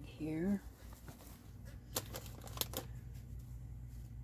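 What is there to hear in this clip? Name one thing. A cloth bag full of things rustles as it is set down.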